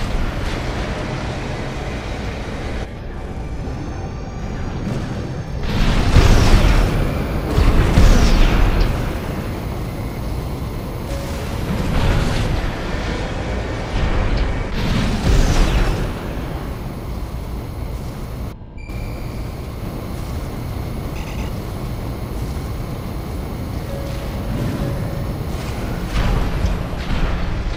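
A hovering mech's thrusters roar as it boosts ahead.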